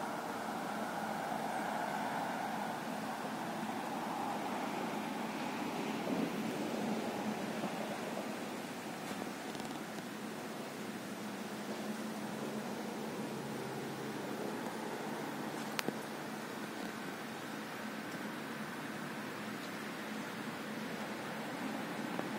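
Floating ice floes grind and rustle steadily on a flowing river.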